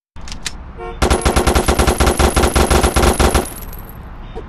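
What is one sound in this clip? A machine gun fires a rapid burst of shots.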